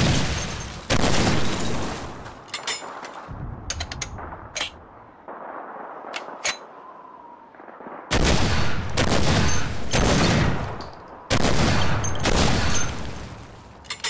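A heavy rifle fires loud booming shots that echo in a room.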